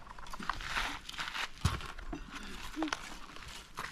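A shovel scrapes and scoops sand into a metal bucket.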